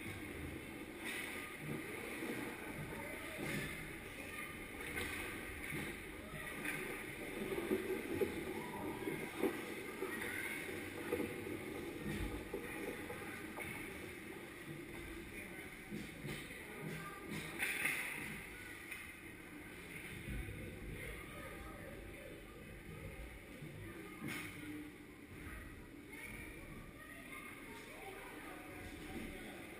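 Ice skates scrape and swish across the ice in a large echoing rink.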